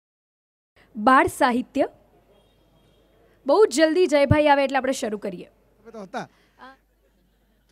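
A young woman speaks into a microphone through loudspeakers.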